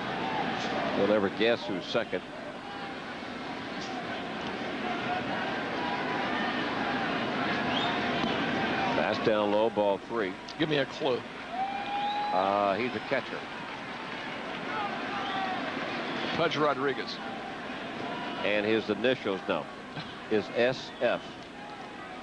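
Men in the crowd shout and whistle loudly now and then.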